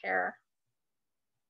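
A woman speaks briefly over an online call.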